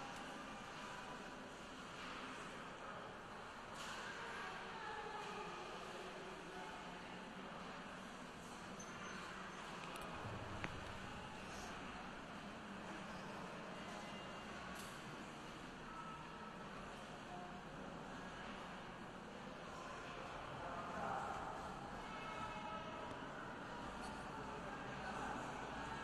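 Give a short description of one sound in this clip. A choir sings softly in a large echoing hall.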